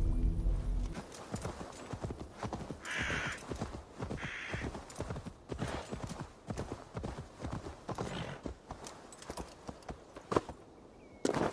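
Horse hooves thud steadily on the ground.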